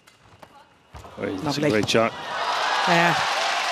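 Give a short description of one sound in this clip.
A crowd in a large hall cheers and applauds loudly.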